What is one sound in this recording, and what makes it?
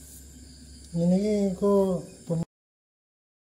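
A man speaks briefly close by.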